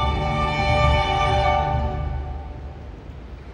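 A string ensemble with a piano holds a final chord that rings out in a large hall.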